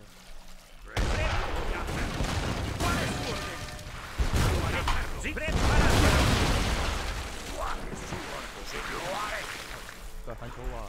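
Cannons boom in rapid volleys amid crackling gunfire.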